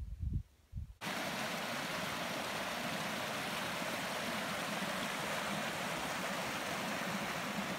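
A shallow stream rushes and splashes over rocks.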